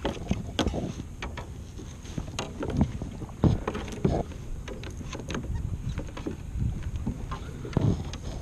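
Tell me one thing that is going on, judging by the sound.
A pole splashes and churns in shallow water.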